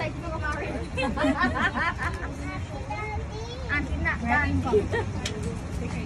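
A woman laughs close by.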